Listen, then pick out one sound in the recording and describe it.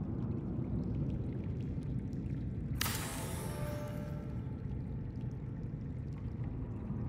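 A low, steady underwater rumble hums throughout.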